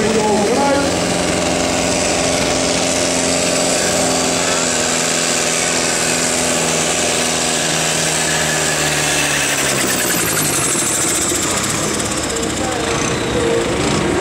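A tractor engine roars loudly under heavy strain, its pitch slowly falling as it pulls away.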